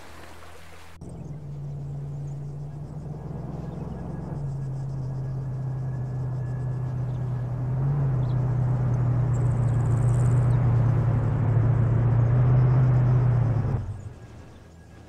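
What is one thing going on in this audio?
A truck engine rumbles as it drives closer, then stops.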